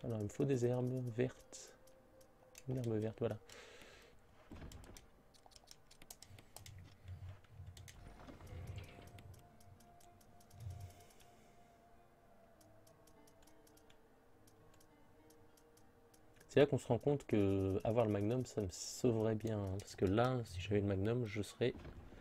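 Short electronic blips tick as a game menu scrolls.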